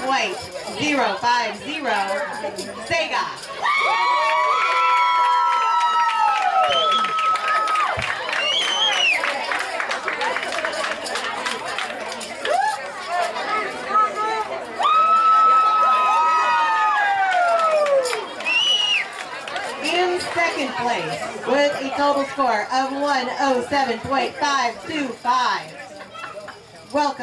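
A crowd of children and adults chatters nearby.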